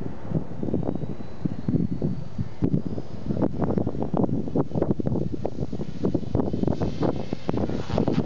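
A model helicopter's motor whines as its rotor spins up and lifts off.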